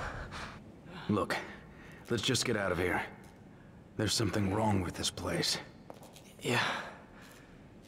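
A man answers calmly, close by.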